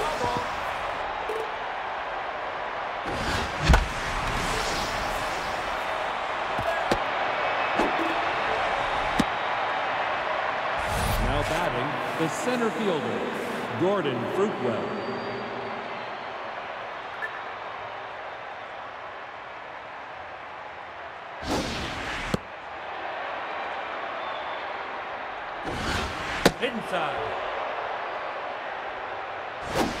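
A stadium crowd murmurs and cheers steadily.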